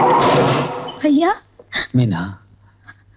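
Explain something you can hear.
A young woman cries out with emotion nearby.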